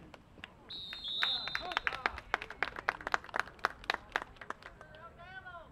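Spectators clap their hands in quick bursts.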